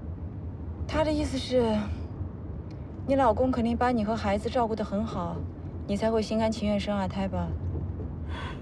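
A woman speaks calmly up close.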